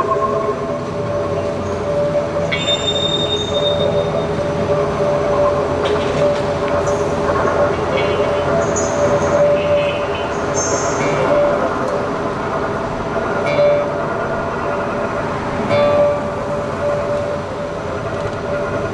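A cello plays low bowed notes.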